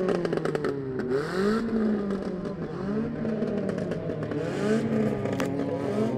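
Car engines roar and rev loudly nearby.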